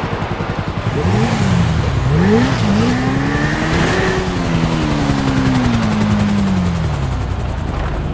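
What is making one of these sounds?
A motorcycle engine revs up and down.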